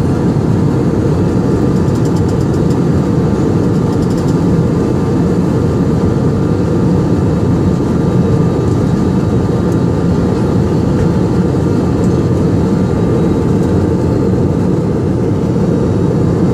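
Jet engines roar steadily in a low, constant rumble inside an airliner cabin.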